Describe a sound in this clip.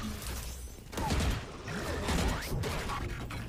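Video game sound effects whoosh and thump in short bursts.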